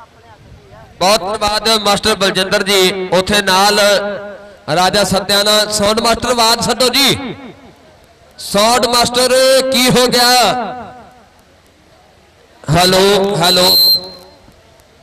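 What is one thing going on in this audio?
A crowd of onlookers shouts and cheers outdoors.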